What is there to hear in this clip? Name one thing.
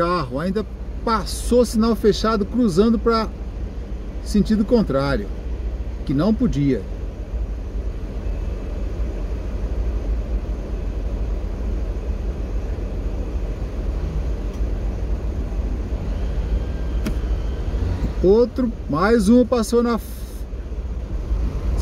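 A small motorcycle engine idles.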